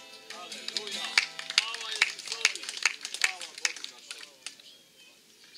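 A man sings along.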